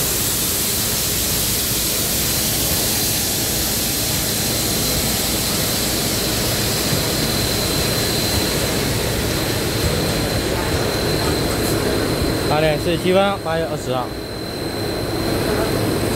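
A steam locomotive rumbles slowly past.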